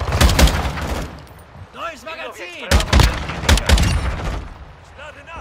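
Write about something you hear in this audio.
A scoped rifle fires sharp shots.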